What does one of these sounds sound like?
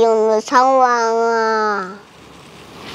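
A young boy speaks pleadingly close by.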